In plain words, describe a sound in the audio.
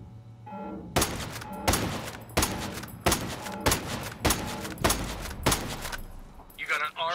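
Rifle shots ring out in quick succession.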